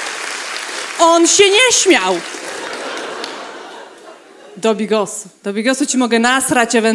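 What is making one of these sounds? A young woman speaks with animation into a microphone in a large hall.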